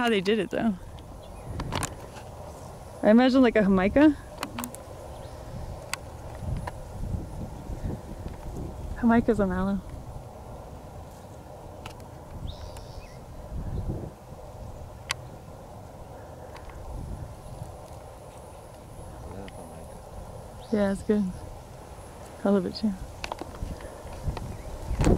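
Wind blows and rustles through dry brush outdoors.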